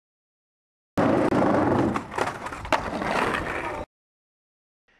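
Skateboard wheels roll and rumble over pavement.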